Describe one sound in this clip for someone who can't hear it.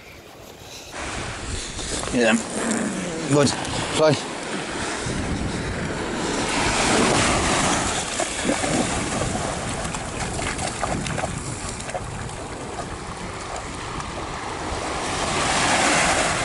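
Small waves wash onto a sandy shore.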